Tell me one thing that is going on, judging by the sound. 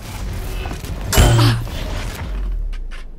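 Gunshots ring out in a quick burst.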